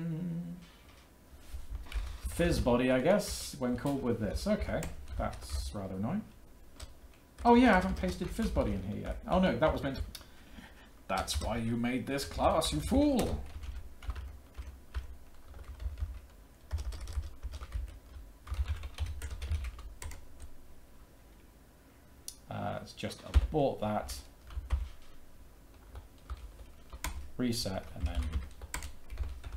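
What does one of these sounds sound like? Keys on a keyboard click and clatter.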